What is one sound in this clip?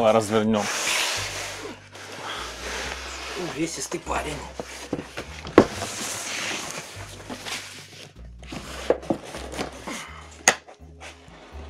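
A wooden box scrapes and knocks on a table.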